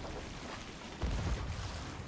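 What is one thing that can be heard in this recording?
A cannon blast booms.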